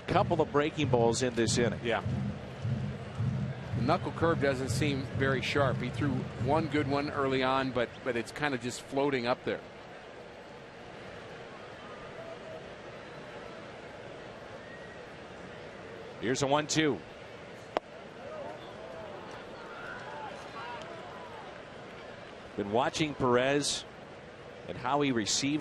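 A large crowd murmurs in a ballpark.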